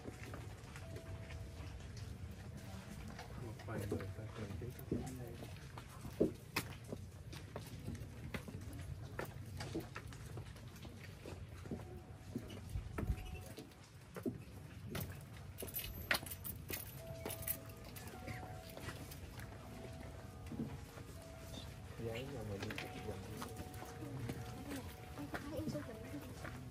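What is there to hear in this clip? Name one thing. A crowd of people murmurs quietly in the background.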